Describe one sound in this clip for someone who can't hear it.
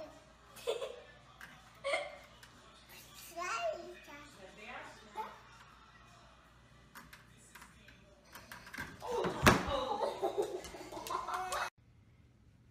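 A young child squeals and laughs close by.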